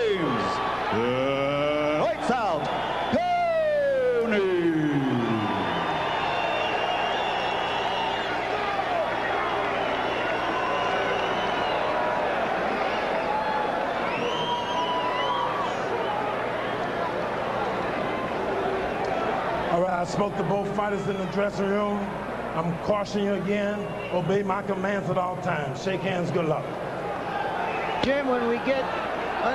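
A large crowd cheers and roars in a big arena.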